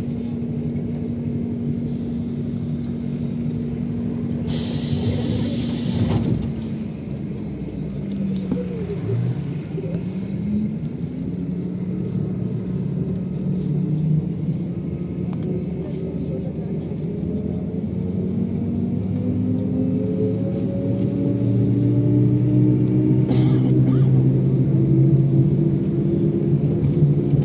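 A vehicle's engine hums steadily, slows down and then speeds up again with a rising whine.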